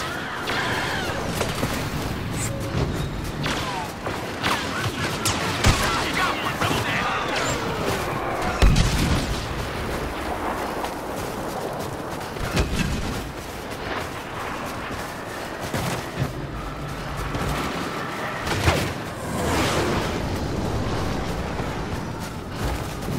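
Blaster rifles fire in sharp bursts.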